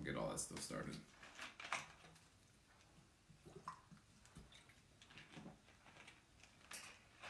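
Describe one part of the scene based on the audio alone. A plastic bottle crinkles in a hand.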